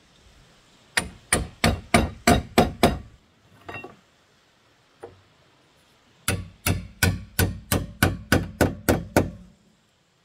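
A hammer strikes wood in quick blows.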